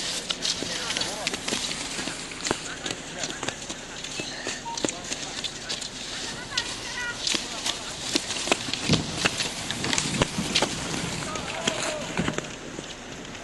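Skis scrape and swish over packed snow.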